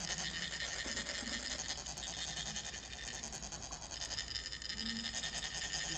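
Metal funnels rasp steadily as they are rubbed to trickle sand.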